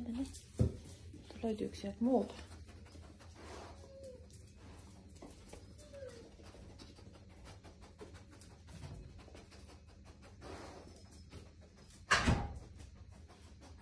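A dog sniffs.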